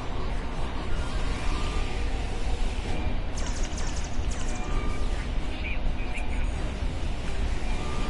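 An energy weapon fires with a buzzing hiss.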